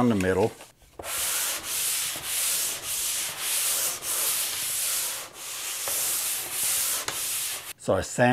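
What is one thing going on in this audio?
A sanding pad scrapes in steady sweeps over a wall.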